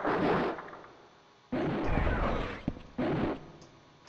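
A magical blast whooshes and rumbles.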